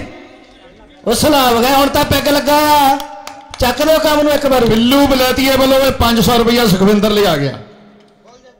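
A man announces loudly and with animation through a loudspeaker.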